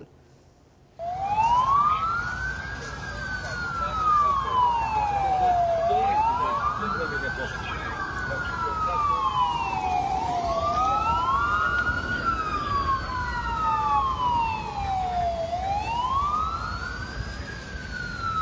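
A large fire roars and crackles outdoors.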